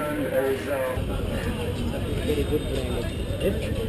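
A busy crowd murmurs outdoors.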